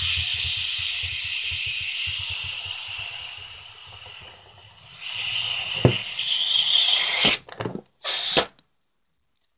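Air hisses and squeals out of a balloon as it is pressed flat.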